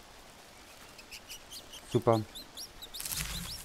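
A bird chirps rapidly.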